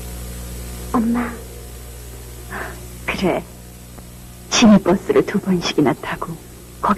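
A woman speaks softly close by.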